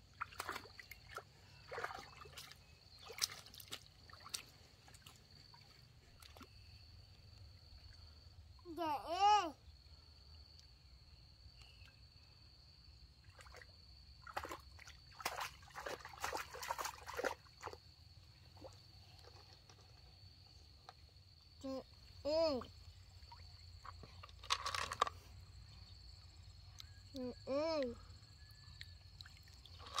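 Shallow stream water trickles softly.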